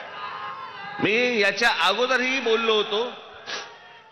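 A man speaks forcefully into a microphone over loudspeakers, echoing outdoors.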